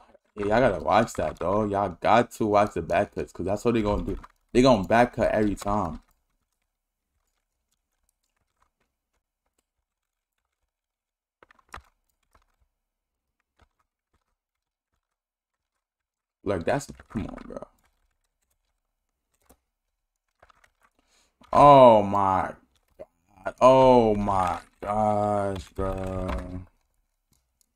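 A young man talks with animation into a close microphone, in bursts with pauses.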